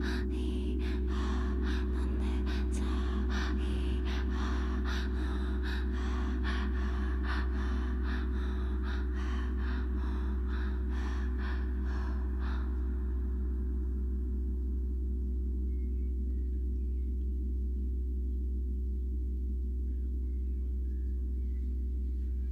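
Electronic music plays with a low droning bass.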